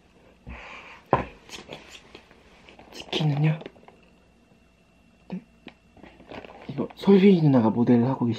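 A cardboard box rustles and taps in a man's hands.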